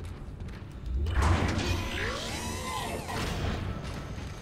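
A heavy metal door slides open with a mechanical whoosh.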